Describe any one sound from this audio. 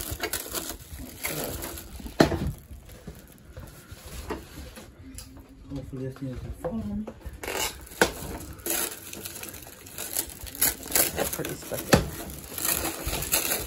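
Cardboard scrapes and bumps.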